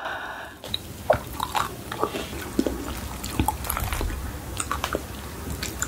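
Crispy fried chicken crackles softly as fingers handle it close to a microphone.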